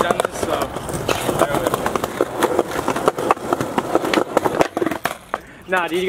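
A skateboard clacks sharply against the pavement during tricks.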